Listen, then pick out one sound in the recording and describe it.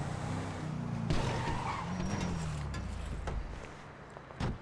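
A car engine runs as a car slows to a stop.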